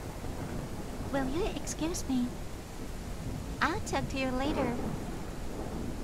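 A young woman speaks calmly and politely.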